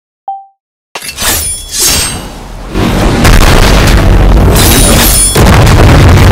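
Sword slashes whoosh and clash in a game.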